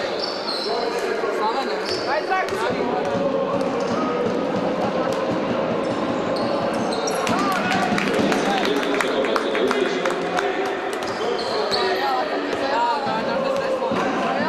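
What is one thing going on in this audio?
A crowd of spectators murmurs in the background.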